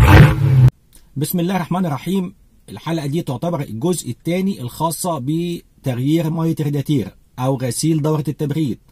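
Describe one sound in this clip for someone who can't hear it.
A middle-aged man talks calmly and close up.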